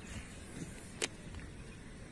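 A fishing reel clicks.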